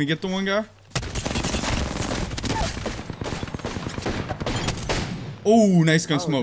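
Rapid gunfire rattles in a game.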